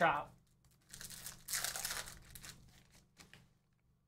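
A card pack's foil wrapper crinkles and tears.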